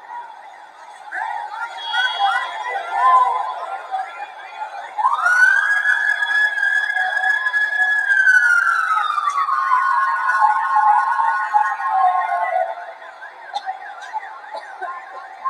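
A large crowd shouts and chants in the distance.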